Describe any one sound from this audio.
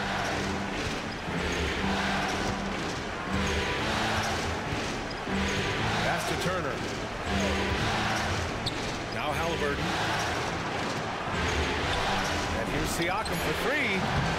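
A large indoor crowd cheers and murmurs steadily.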